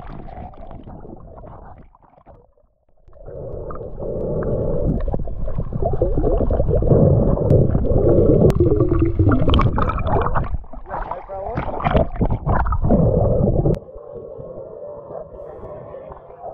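Bubbles and water rumble, muffled, underwater.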